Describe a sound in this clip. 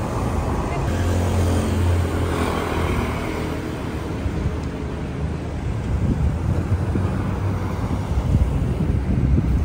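A motorbike passes by.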